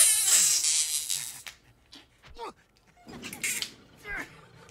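An older man laughs wildly.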